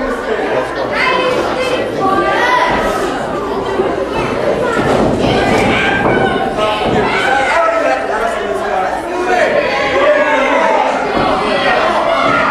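Spectators cheer and shout in an echoing hall.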